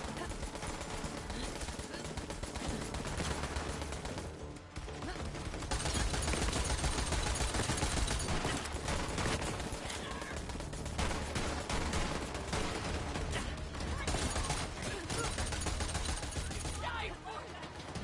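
Rapid gunfire crackles and bangs in quick bursts.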